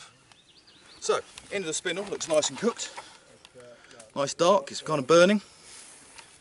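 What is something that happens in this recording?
A man talks calmly outdoors, close by.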